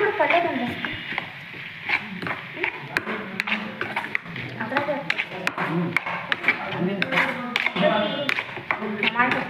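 Food sizzles in a hot pan.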